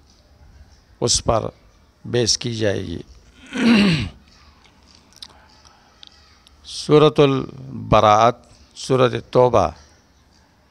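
A middle-aged man speaks calmly into a close headset microphone, in short phrases with pauses.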